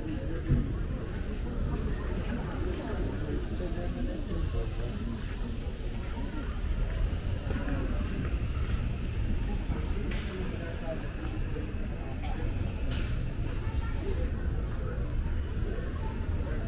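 Footsteps tap on a pavement close by.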